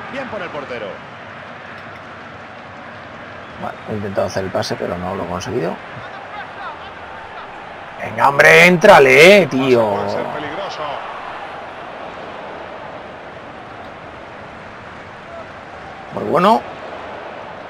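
A large stadium crowd murmurs steadily in the background.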